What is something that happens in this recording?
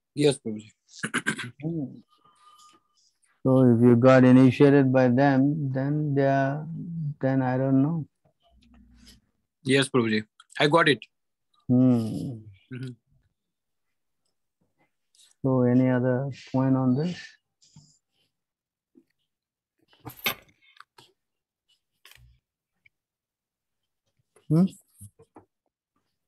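An elderly man speaks slowly and calmly over an online call, with pauses.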